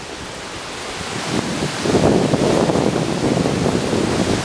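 A stream rushes over rocks below.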